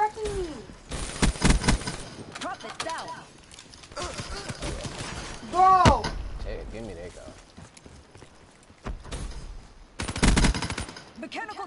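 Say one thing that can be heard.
Guns fire in short, rapid bursts.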